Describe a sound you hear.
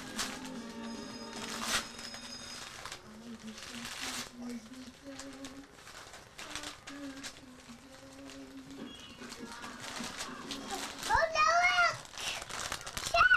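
A wrapper crinkles and rustles as a small child tears it open.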